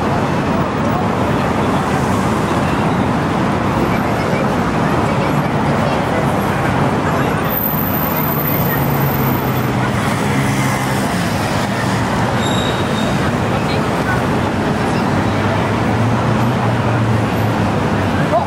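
Traffic rumbles steadily nearby outdoors.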